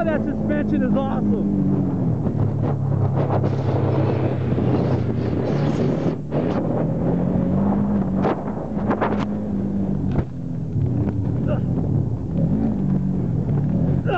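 An off-road vehicle's engine revs and roars up and down close by.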